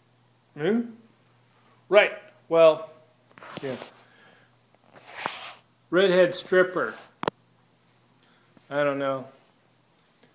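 A middle-aged man speaks close to the microphone with animation, in short bursts.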